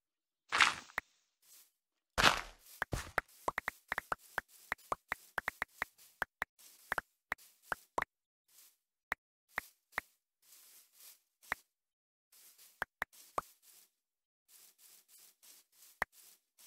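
Footsteps pad softly over grass.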